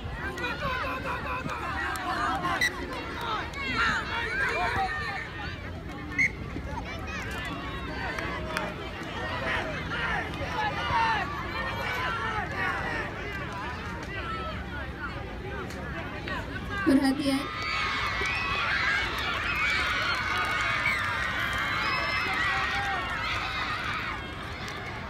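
Young players call out to each other on the field.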